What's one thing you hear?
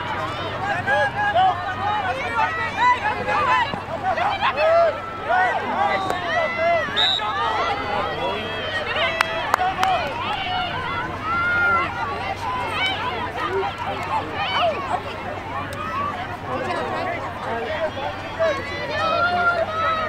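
A crowd of young women and girls shout and cheer.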